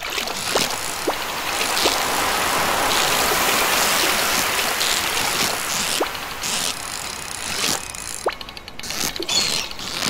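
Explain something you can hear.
A fishing reel whirs steadily as a line is reeled in.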